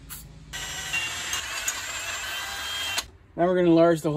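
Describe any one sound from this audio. A power drill whirs as it bores into metal.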